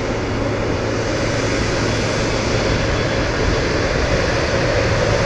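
Jet engines of a taxiing airliner whine and roar steadily nearby.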